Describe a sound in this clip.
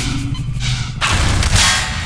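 A gun fires with a sharp crack.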